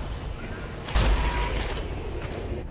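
A large robotic walker fires a loud laser blast.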